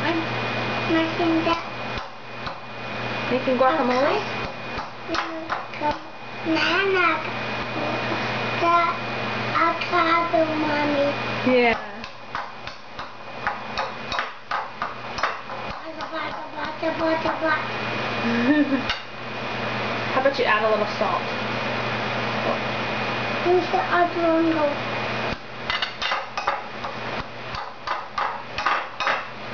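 A young child talks and babbles nearby.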